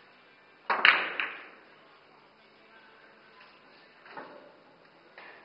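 Pool balls roll and knock against each other and the cushions.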